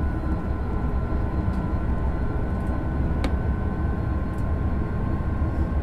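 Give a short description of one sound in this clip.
An electric train motor hums with a steady whine.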